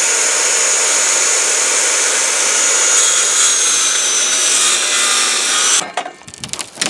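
A circular saw whines loudly as it cuts.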